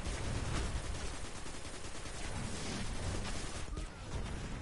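Gunshots fire rapidly in a game.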